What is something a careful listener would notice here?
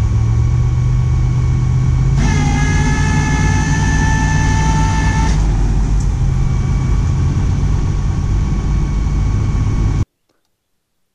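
A tow truck's engine rumbles steadily outdoors.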